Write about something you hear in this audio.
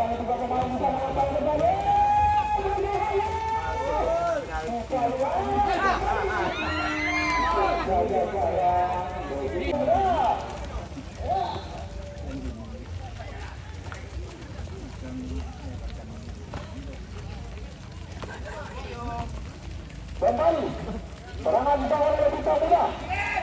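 A crowd of spectators shouts and cheers excitedly outdoors.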